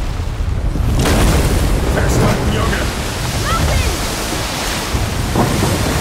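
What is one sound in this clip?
Waves crash and water churns violently.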